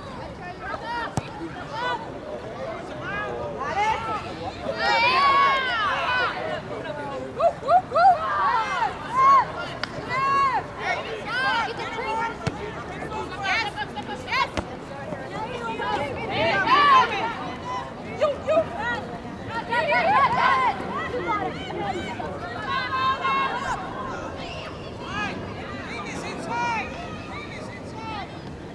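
Young women shout and call out to each other across an open field, heard from a distance.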